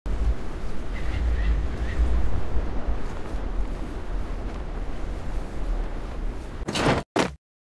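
Wind rushes steadily, with a low rumble.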